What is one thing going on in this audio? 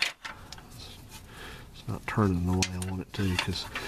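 A wrench clinks against metal parts.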